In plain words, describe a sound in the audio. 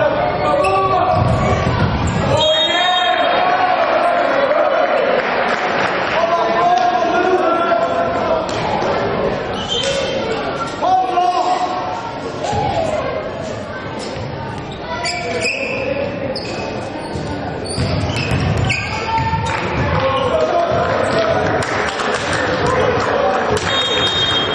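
Young men shout calls to each other in an echoing sports hall.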